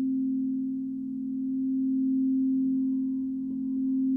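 A mallet taps softly on a crystal bowl.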